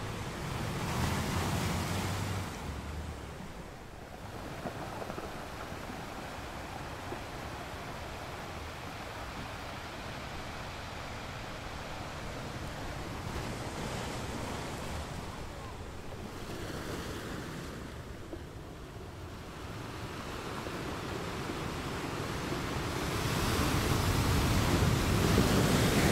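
Waves crash and break on rocks.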